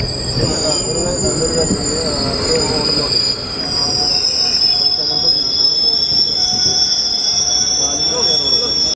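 A train rumbles and clatters along the tracks at a steady pace.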